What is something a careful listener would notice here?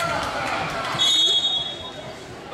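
A referee's whistle blows sharply.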